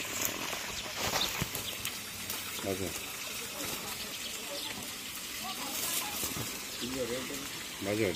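A stick rustles and pokes through dry litter.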